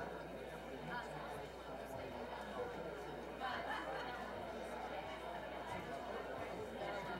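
A seated audience murmurs and chats quietly.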